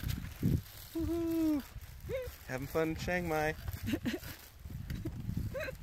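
A woman laughs and talks close by.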